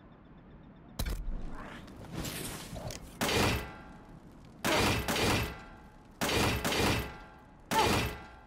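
Magic blasts whoosh and crackle in loud bursts.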